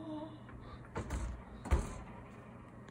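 An oven door thuds shut.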